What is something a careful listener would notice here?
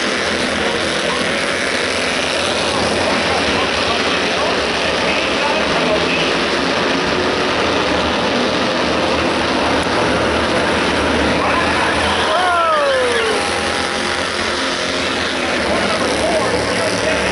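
Race car engines roar loudly as the cars speed around the track.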